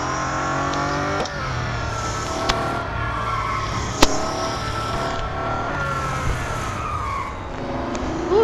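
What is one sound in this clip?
A racing car engine roars at high revs, its pitch rising and dropping with gear shifts.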